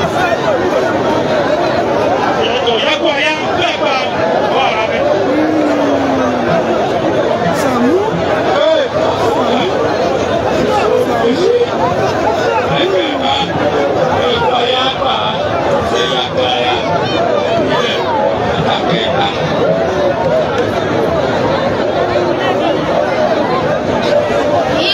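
A crowd of people talks and shouts loudly all around.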